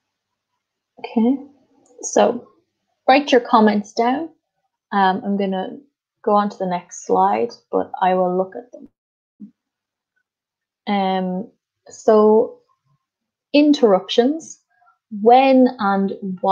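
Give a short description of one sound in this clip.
A woman speaks calmly into a microphone, heard as if over an online call.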